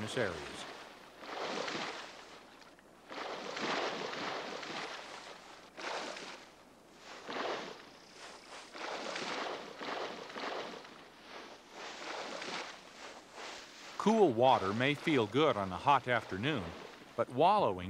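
A large animal thrashes its antlers through dry grass, rustling loudly.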